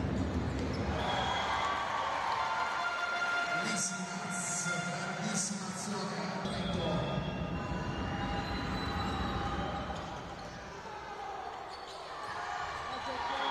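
A large crowd cheers and claps in an echoing arena.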